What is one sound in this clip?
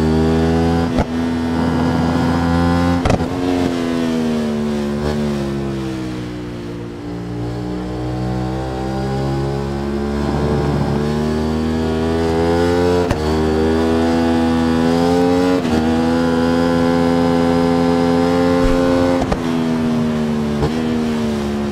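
A motorcycle's gears shift with sharp clicks.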